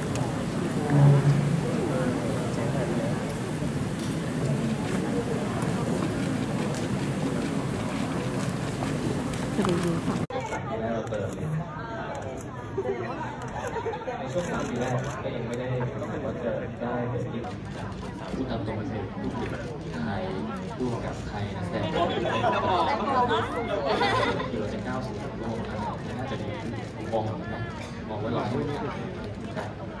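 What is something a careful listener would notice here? A crowd of people chatters loudly nearby.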